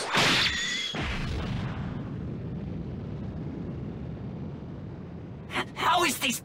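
A deep explosion rumbles and slowly fades.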